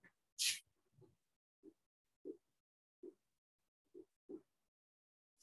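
A marker taps and scratches on a whiteboard.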